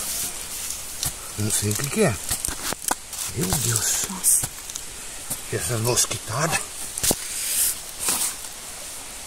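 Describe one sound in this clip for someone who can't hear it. A metal shovel scrapes and digs into soil.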